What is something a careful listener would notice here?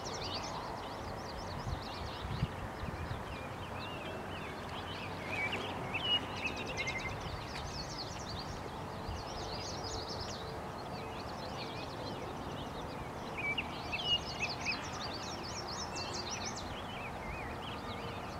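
Shallow river water ripples softly around a man's legs as he wades.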